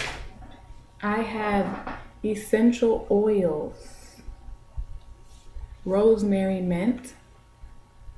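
A young woman talks calmly close to a microphone.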